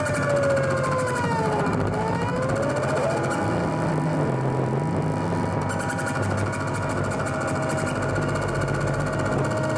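A low electronic bass hum pulses steadily.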